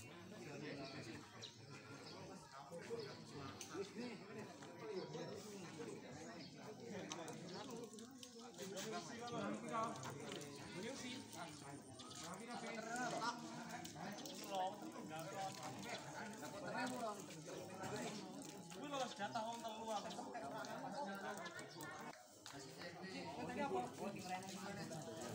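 A group of adults chat outdoors at a distance.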